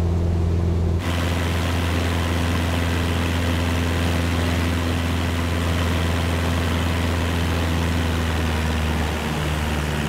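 A propeller plane's engine roars outside in rushing wind.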